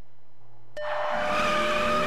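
A button clicks sharply.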